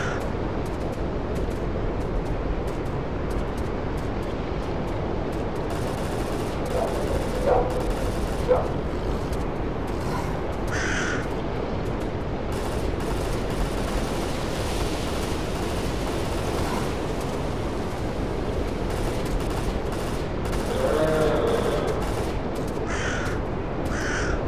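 Wind blows steadily through forest trees outdoors.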